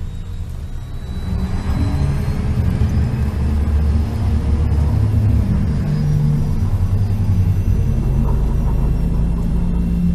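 A train rumbles steadily as it rolls along.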